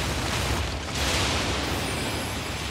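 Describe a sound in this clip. Water splashes heavily as a large beast lunges.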